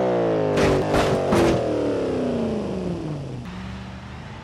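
A car engine roars past and drops in pitch as it moves away.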